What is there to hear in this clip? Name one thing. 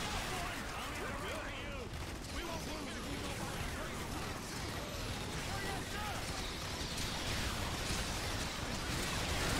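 Giant insects screech and chitter.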